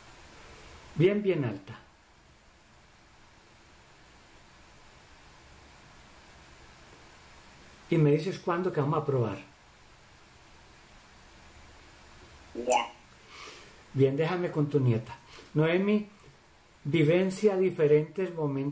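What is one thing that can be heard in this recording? A man speaks calmly and slowly through an online call.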